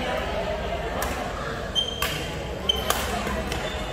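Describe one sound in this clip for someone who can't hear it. A shuttlecock is smacked with a racket in a large echoing hall.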